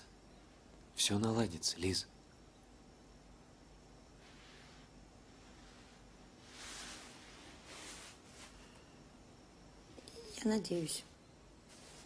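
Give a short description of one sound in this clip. A young man speaks softly and playfully nearby.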